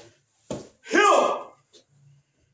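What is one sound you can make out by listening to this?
A man gives a short, loud shout.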